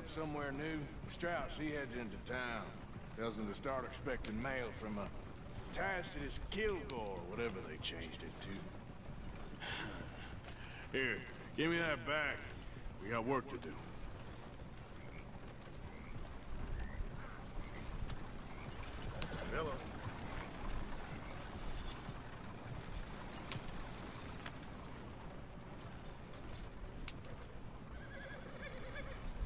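A horse-drawn wagon rattles and creaks along a dirt track.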